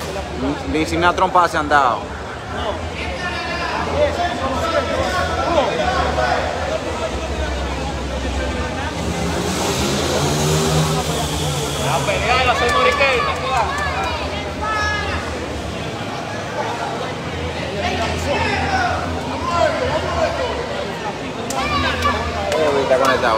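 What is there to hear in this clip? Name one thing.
Spectators at a boxing match shout and cheer.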